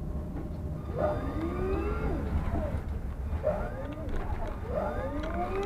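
A tram's electric motor whines, rising in pitch as the tram pulls away.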